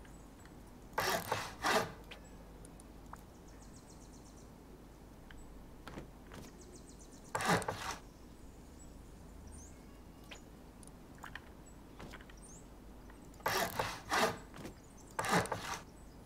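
Wooden walls land in place with loud, crunching thuds.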